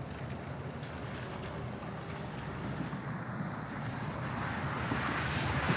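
A vehicle drives up on a road and comes closer.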